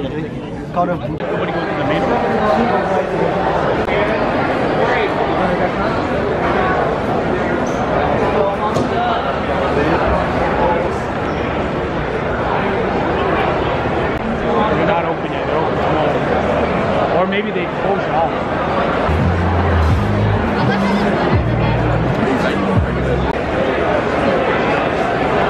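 A large crowd chatters with many voices in a large echoing hall.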